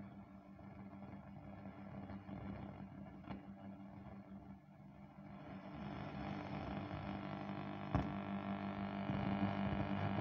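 An old radio hums and crackles as its tuning knob is turned between stations.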